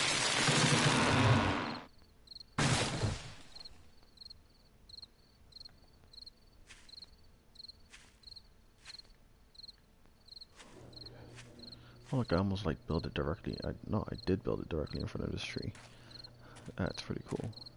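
Footsteps rustle through tall grass at a steady walking pace.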